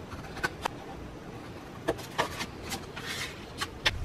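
Scissors snip paper.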